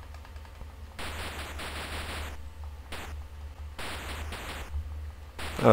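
A retro video game plays buzzing electronic sound effects.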